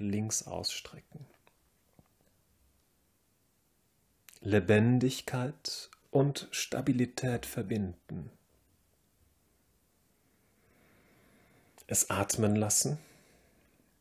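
A man speaks calmly and clearly into a close microphone, giving instructions in short phrases.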